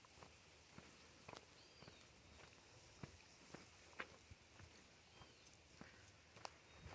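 A small dog's paws patter softly on a dirt path.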